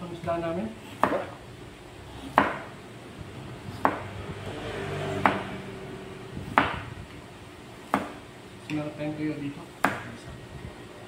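Dishes clink on a table now and then.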